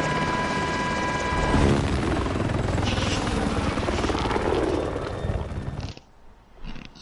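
A helicopter's rotor thunders loudly overhead.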